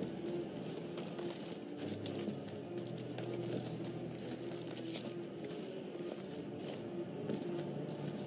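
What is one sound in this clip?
Footsteps patter against a rock wall.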